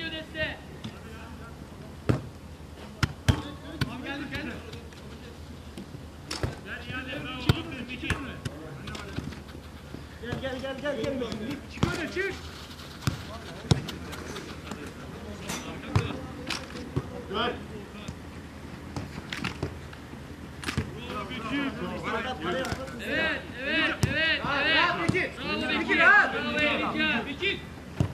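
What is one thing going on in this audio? A football thuds as it is kicked, again and again.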